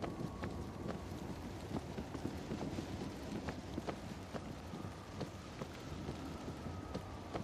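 Footsteps walk quickly on hard pavement.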